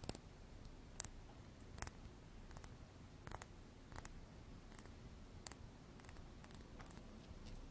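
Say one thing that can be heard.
Hands brush and tap close to a microphone in short, crisp bursts.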